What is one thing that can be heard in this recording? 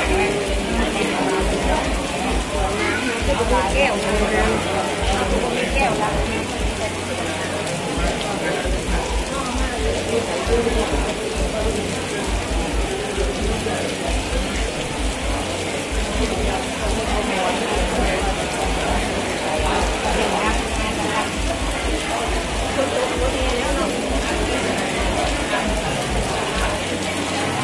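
A crowd of men and women chant together in a large echoing hall.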